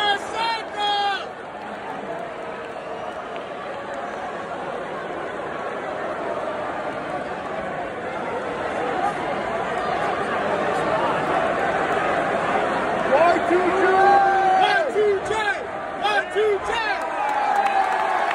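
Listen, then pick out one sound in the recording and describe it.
Fans in a crowd shout and whistle loudly.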